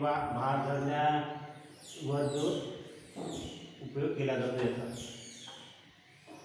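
A man speaks calmly and clearly close by in a small echoing room.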